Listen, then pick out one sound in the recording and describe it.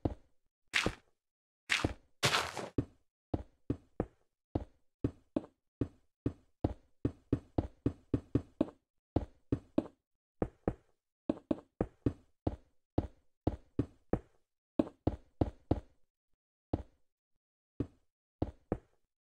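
Stone blocks knock and thud as they are set down one after another, at a quick, uneven pace.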